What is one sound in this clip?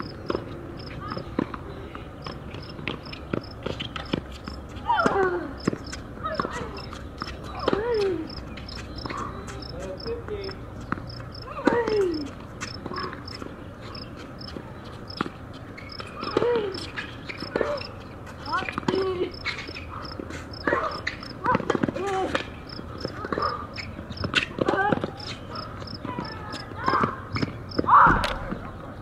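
A tennis ball pops off rackets in a rally.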